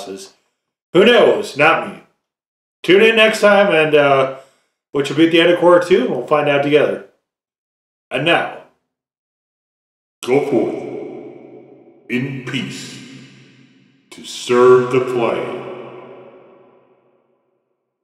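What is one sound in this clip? A man speaks calmly and theatrically, close up.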